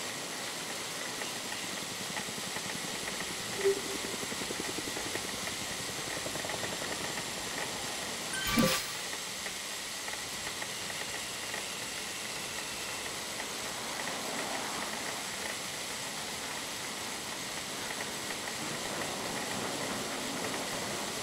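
A bike trainer whirs steadily under pedalling.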